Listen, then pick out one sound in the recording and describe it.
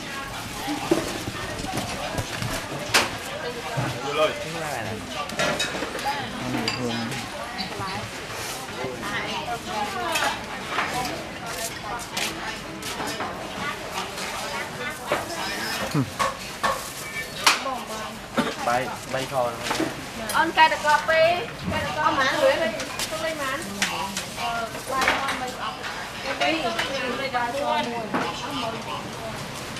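Several men and women talk nearby at the same time.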